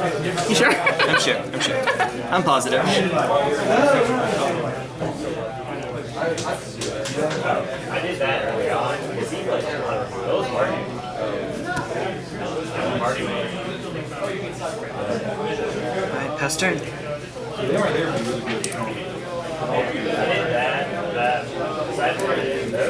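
Playing cards slap and slide on a table mat.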